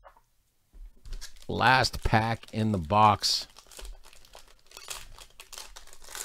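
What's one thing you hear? A foil card wrapper crinkles as hands handle it.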